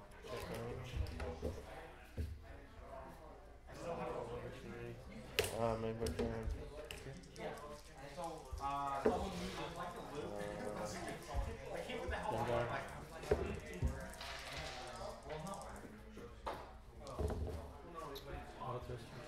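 Small plastic pieces click on a tabletop.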